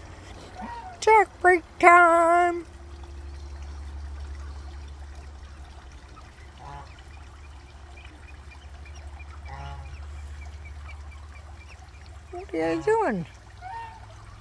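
Geese honk loudly nearby.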